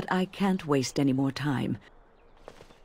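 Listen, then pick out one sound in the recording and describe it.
A woman speaks calmly and clearly.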